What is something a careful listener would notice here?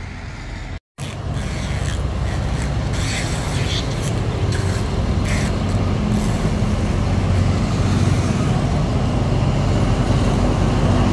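A diesel locomotive engine rumbles loudly as it pulls slowly closer.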